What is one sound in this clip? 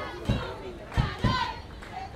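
A crowd murmurs and calls out in an open-air stadium.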